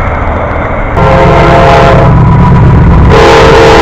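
A freight locomotive roars past close by.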